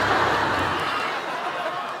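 A young woman giggles.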